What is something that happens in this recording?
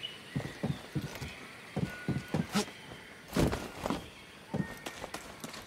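Footsteps thud on a metal grate.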